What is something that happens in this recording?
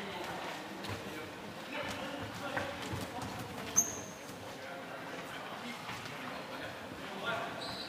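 Players call out to each other from across the hall.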